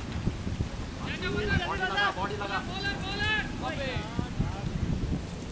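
A man shouts loudly from a distance outdoors.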